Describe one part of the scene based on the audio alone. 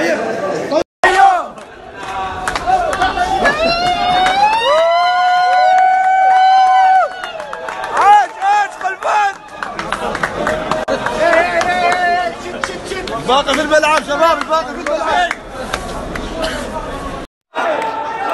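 A crowd of men chants loudly in a large echoing hall.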